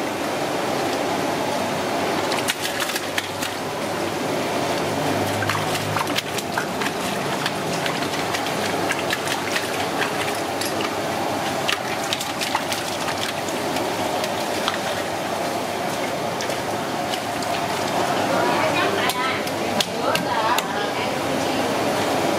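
Water pours from a tap and splashes into a metal bowl.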